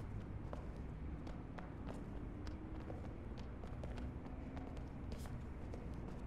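Footsteps patter across a hard floor in a large echoing room.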